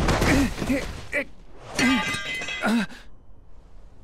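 A metal blade clatters onto hard ground.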